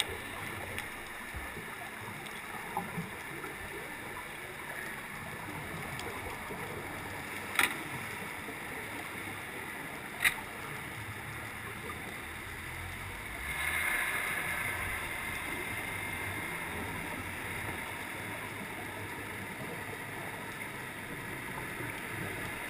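Muffled underwater hiss and rumble surround the listener throughout.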